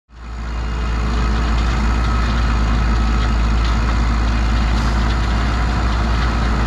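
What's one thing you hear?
A heavy diesel engine rumbles steadily close by.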